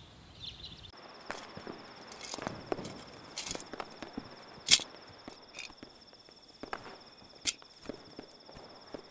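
Cloth rustles and flaps as clothes are handled.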